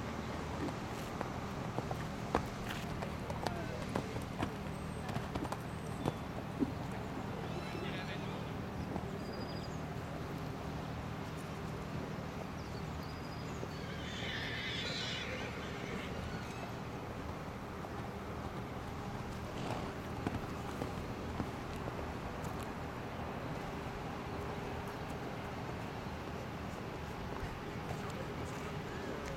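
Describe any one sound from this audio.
A horse's hooves thud softly on sand as it canters.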